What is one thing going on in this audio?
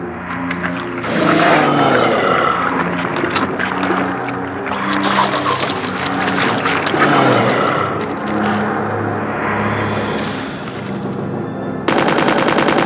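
A monstrous creature roars and growls.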